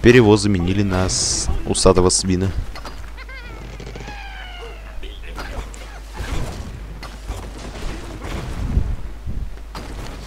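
Wooden and stone blocks crash and tumble.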